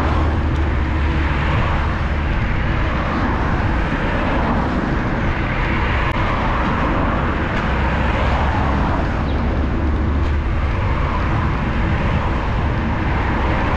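Cars drive past on a nearby road.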